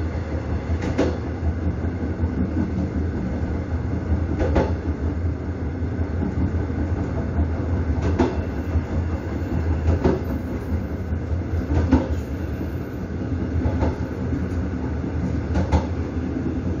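A train's wheels clack over rail joints.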